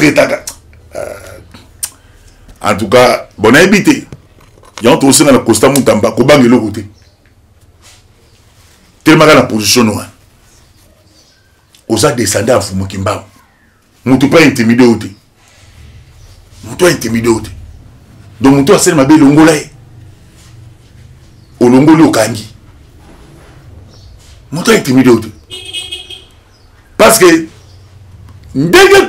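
A middle-aged man speaks with animation into a microphone, in short bursts with pauses.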